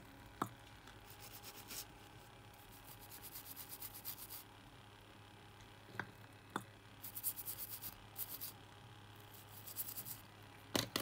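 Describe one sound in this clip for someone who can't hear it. A cotton swab scrubs a small metal part with short, quick rubbing strokes.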